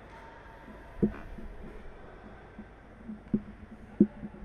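A ball is kicked with sharp thumps in a large echoing hall.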